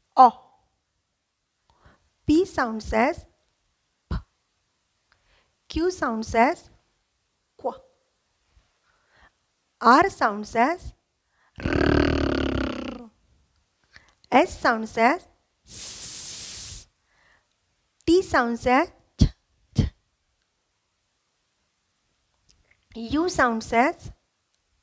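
A young woman speaks with animation into a close headset microphone, pausing often.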